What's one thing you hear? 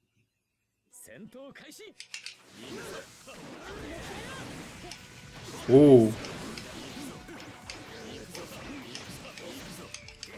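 Fighting-game sound effects of blows and impacts play.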